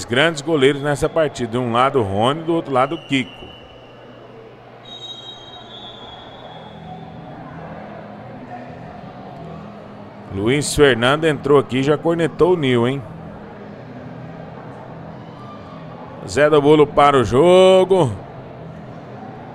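Spectators murmur faintly in a large echoing hall.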